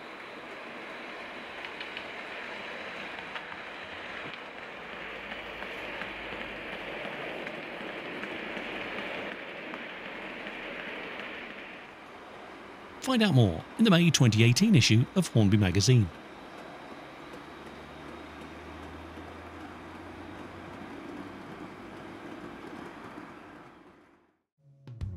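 A model train rumbles steadily along the track.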